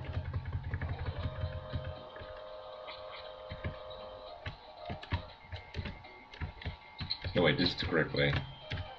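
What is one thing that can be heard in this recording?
Retro video game music plays with electronic beeps.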